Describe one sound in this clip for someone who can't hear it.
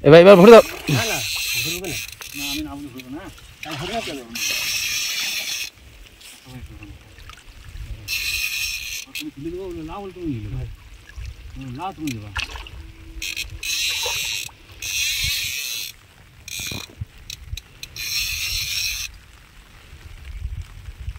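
Water splashes as a net is hauled out of a river.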